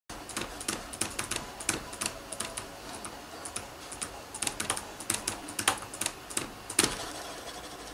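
A stylus taps on a drawing tablet.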